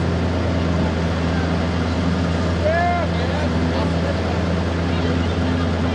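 A truck engine roars as the truck churns through water and mud.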